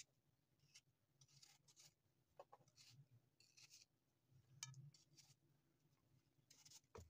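A knife cuts and scrapes through a raw potato.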